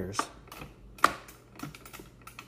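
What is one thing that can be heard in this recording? A joystick clicks and rattles.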